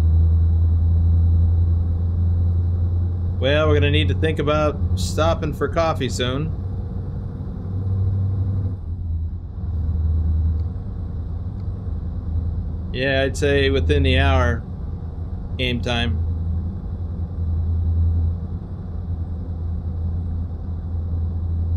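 A truck engine drones low and steady.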